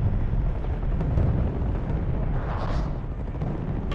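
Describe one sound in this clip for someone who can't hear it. A helicopter's rotor thumps overhead.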